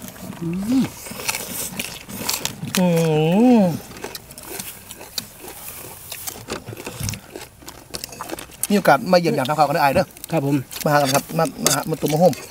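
Men crunch on raw vegetables while eating.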